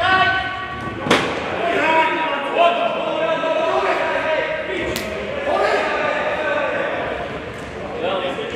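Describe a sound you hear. Shoes squeak on a hard floor.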